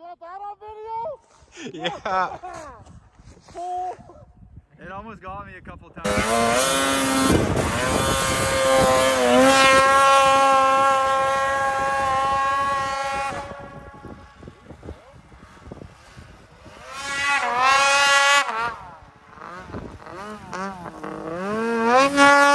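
A snowmobile engine revs up and down, roaring loudly at times.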